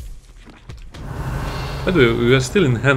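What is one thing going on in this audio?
A magic spell crackles and fizzes.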